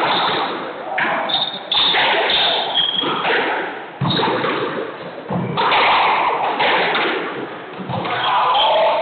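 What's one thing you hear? A squash ball smacks hard against the walls and rackets in an echoing court.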